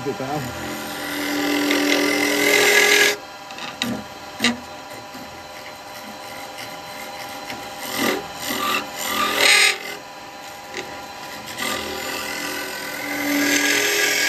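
A chisel scrapes and hisses as it cuts into spinning wood.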